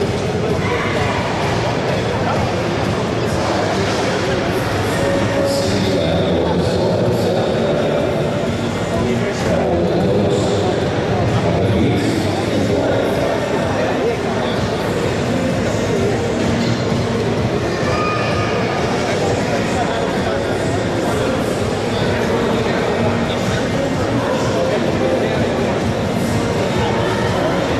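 A crowd chatters and murmurs throughout a large echoing hall.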